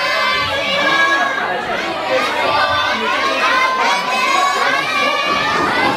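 Upbeat pop music with female singing plays loudly over loudspeakers in a hall.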